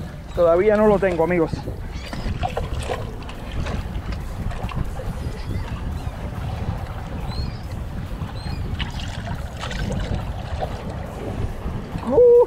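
Small waves lap against rocks.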